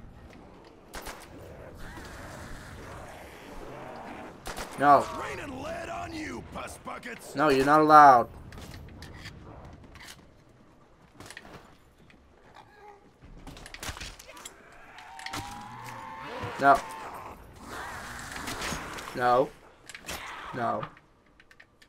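A pistol fires in sharp single shots that echo off stone walls.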